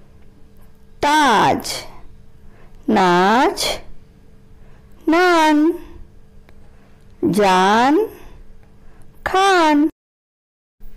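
A woman reads out single words slowly and clearly, close to a microphone.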